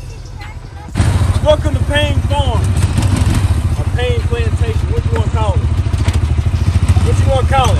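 A quad bike engine rumbles close by.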